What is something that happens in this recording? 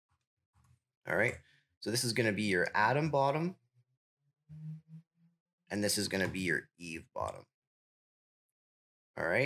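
A young man talks calmly and close to a microphone, in short phrases with pauses.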